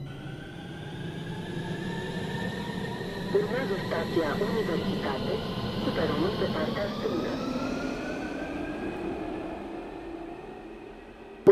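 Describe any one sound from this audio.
An electric train pulls away with a rising whine.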